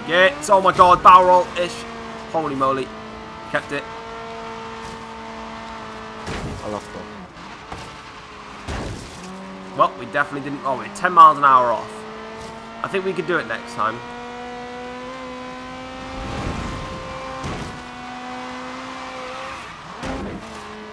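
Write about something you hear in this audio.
A sports car engine roars steadily at high speed, with brief rises and drops in pitch as it shifts gears.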